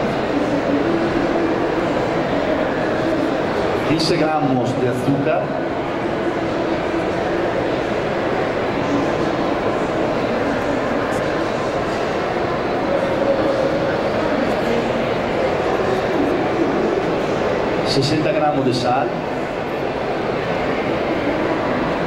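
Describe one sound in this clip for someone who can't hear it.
A man speaks steadily into a microphone, heard through a loudspeaker in a noisy room.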